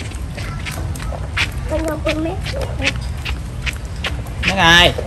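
Small bare feet pat on wet concrete.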